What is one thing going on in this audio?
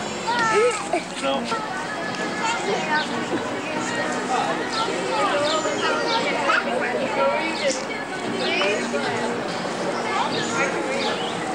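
Young girls talk and call out nearby, outdoors.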